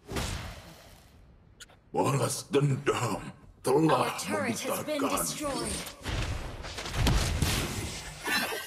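Fantasy battle sound effects whoosh and clash.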